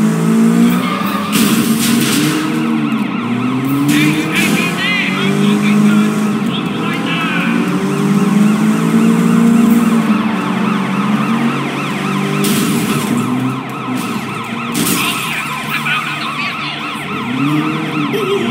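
Tyres squeal as a car skids around corners.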